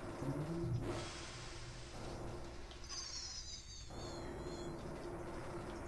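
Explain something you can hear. Upbeat electronic arcade game music plays steadily.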